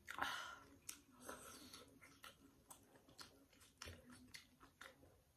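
A young woman slurps noodles loudly, close by.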